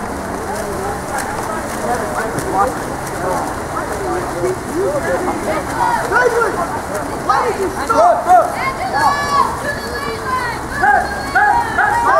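A crowd of spectators shouts and cheers from nearby.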